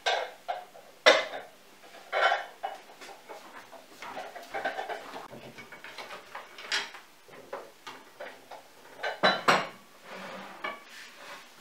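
Dishes clink as they are stacked and moved.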